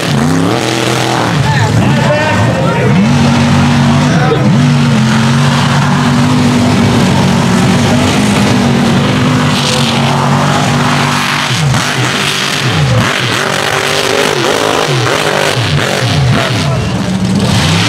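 A big truck engine roars loudly as it revs up and down.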